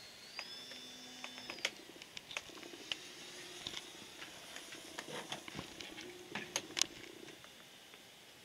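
A small propeller plane drones faintly high overhead.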